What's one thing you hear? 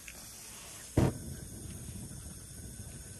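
A match strikes and flares.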